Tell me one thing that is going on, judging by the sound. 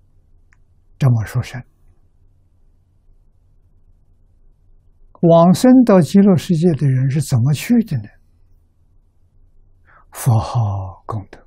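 An elderly man speaks calmly and slowly into a close microphone, with long pauses.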